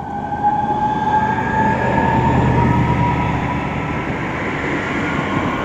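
Train motors whine with a rising pitch.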